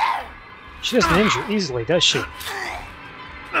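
A young woman screams in anguish close by.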